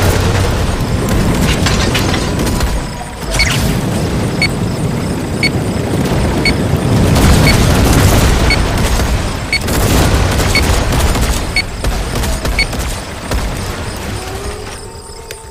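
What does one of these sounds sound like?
Game weapons fire and explosions burst rapidly.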